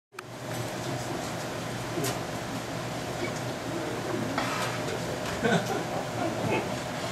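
A trumpet plays a melody.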